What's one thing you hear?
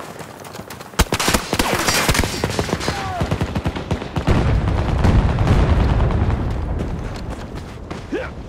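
Loud explosions boom close by with a deep rumble.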